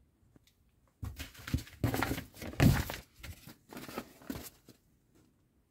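Small plastic parts click and knock as they are handled.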